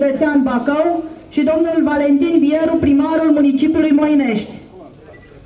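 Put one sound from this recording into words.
A woman reads out through a microphone, heard over loudspeakers outdoors.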